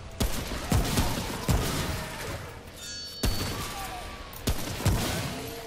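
Pistol shots ring out in sharp bursts, echoing in a large space.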